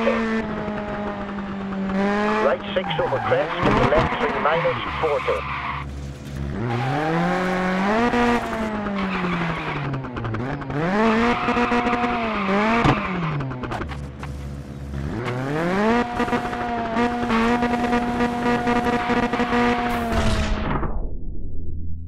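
A rally car engine revs hard, rising and falling as it changes gear.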